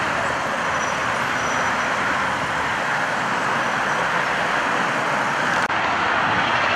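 Traffic rolls slowly past close by, with engines humming and tyres on the road.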